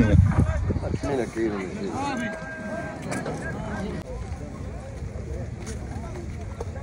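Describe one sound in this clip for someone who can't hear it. Men talk in a lively crowd outdoors.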